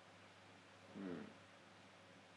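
A man briefly murmurs close to a microphone.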